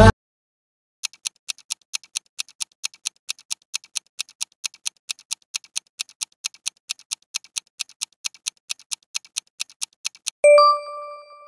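A timer ticks quickly and steadily.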